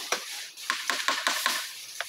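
A hammer strikes metal with sharp clanks.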